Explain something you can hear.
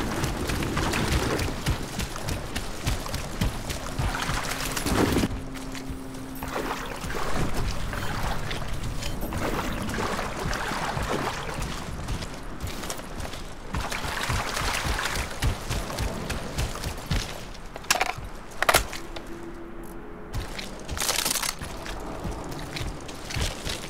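Footsteps crunch over gravel and dry grass.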